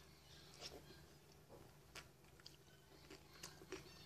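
A young woman chews and smacks her lips close by.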